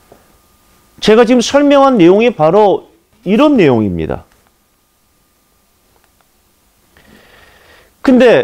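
A man lectures with animation through a microphone.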